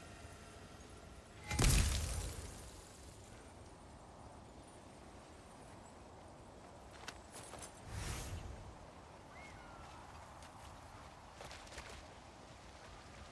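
Heavy footsteps crunch on gravel.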